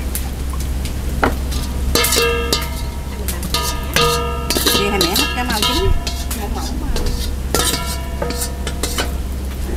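A metal spoon scrapes against a metal bowl.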